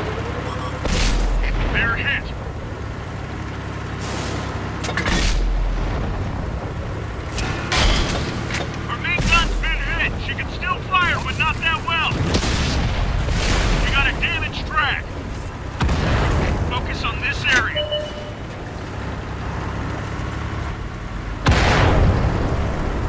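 A tank cannon fires with loud, heavy booms.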